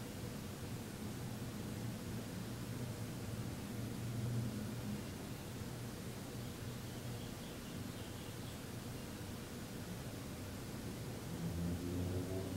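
A man hums a low, steady drone, growing louder near the end.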